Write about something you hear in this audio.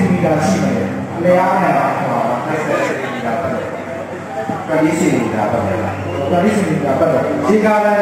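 A second man answers into a microphone through a loudspeaker.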